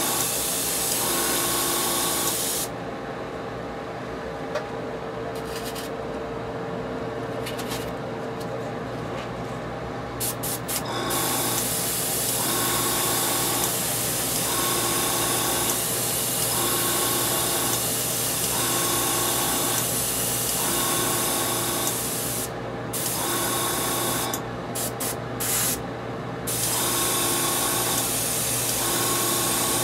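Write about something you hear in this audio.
An airbrush hisses as it sprays paint in bursts.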